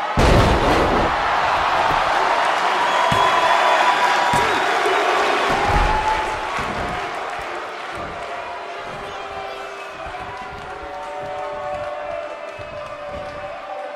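A large crowd cheers and roars in a big arena, loud at first and then quieter.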